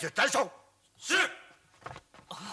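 A young man speaks sharply, close by.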